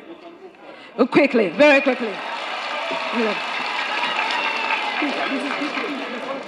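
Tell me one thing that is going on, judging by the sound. A crowd cheers and claps.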